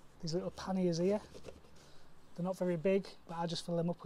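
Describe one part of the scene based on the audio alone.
Fabric rustles as a hand pulls at a pouch.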